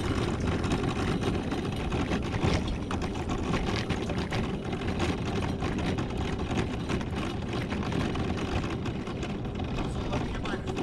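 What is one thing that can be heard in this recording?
Small tyres rumble over rough pavement.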